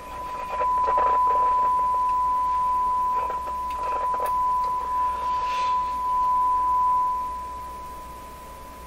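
A steady high electronic tone sounds from test equipment, then fades.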